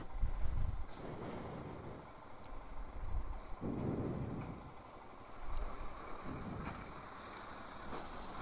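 Wind buffets the microphone in gusts.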